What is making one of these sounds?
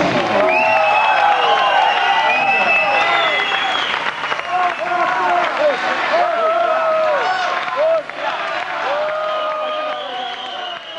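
A live band plays loudly through a large sound system.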